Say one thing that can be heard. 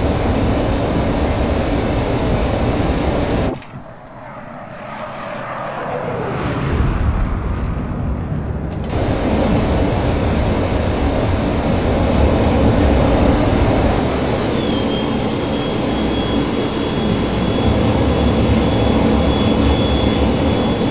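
A twin-engine jet fighter roars steadily, heard from inside the cockpit.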